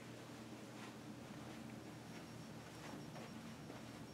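Footsteps cross a floor indoors.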